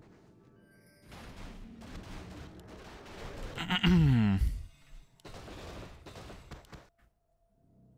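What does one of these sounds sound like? Game spell effects whoosh and crackle in a battle.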